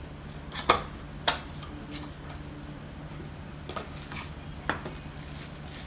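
Cardboard packaging taps and rustles.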